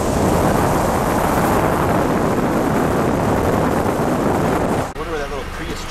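Strong wind rumbles and roars against the microphone outdoors.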